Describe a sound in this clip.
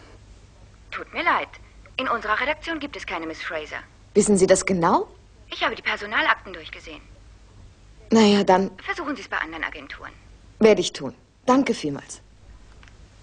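A woman speaks calmly into a telephone close by.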